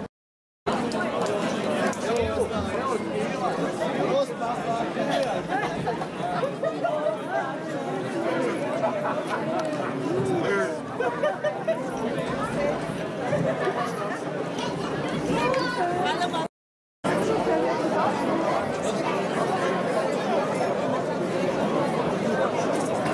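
A large crowd chatters loudly outdoors.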